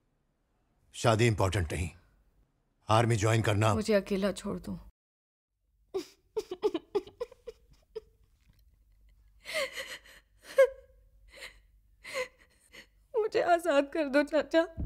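A young woman speaks with emotion.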